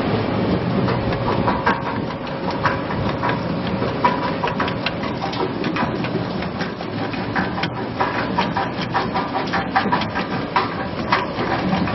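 A cutting machine clatters as it slices potatoes.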